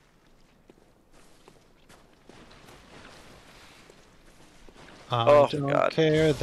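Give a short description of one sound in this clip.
Footsteps crunch softly on stone.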